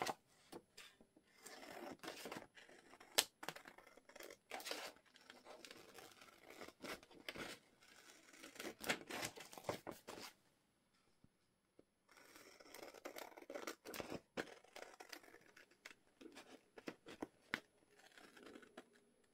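Scissors snip and crunch through stiff paper close by.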